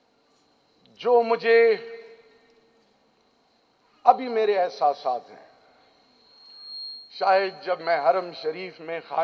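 A man speaks forcefully into a microphone over a loudspeaker system.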